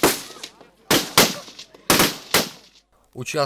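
Rifle shots ring out sharply, echoing outdoors.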